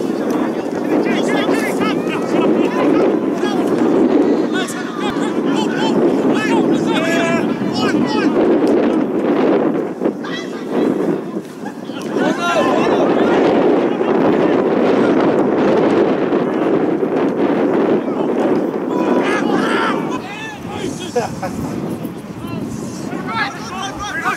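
A crowd of spectators cheers and shouts nearby, outdoors.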